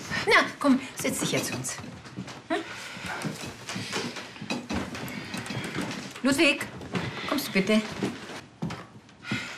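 An older woman speaks calmly and firmly, close by.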